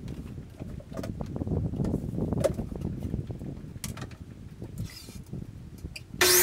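A long wooden board knocks and scrapes as it is set down on a saw table.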